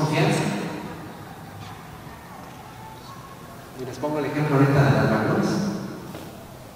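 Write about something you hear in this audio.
A man speaks calmly into a microphone, heard through loudspeakers in an echoing room.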